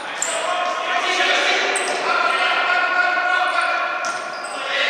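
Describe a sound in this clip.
Men shout to one another from across an echoing hall.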